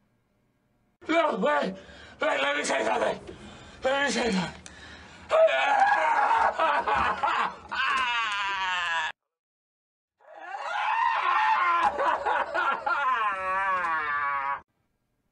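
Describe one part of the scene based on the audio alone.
A man wails and sobs loudly and close by, as if through tears.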